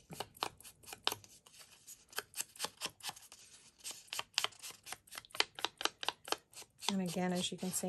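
An ink dauber taps rapidly against a strip of paper.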